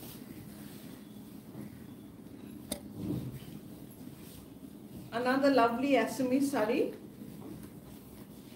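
Fabric rustles as a cloth is shaken out.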